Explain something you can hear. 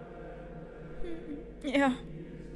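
A young woman laughs briefly, close to a microphone.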